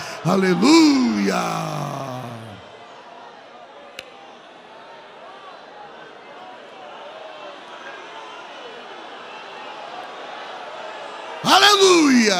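A middle-aged man speaks fervently through a microphone in a large echoing hall.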